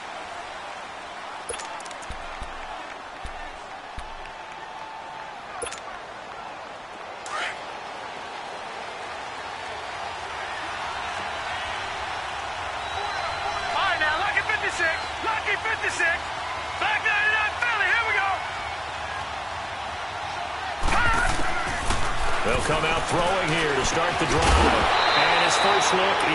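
A large stadium crowd roars steadily, growing louder.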